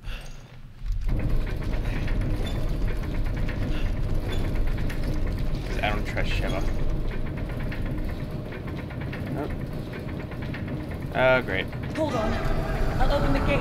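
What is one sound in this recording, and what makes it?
A heavy crank turns with a low mechanical rumble.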